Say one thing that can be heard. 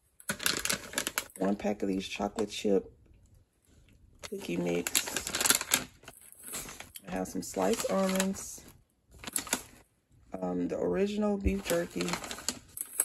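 A plastic snack bag crinkles as a hand handles it.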